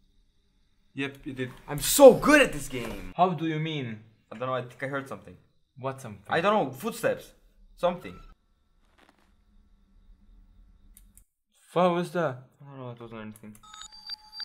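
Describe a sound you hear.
Young men talk with animation into close microphones.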